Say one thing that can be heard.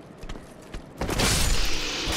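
A sword clashes against a shield.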